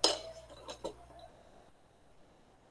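A young woman speaks quietly over an online call.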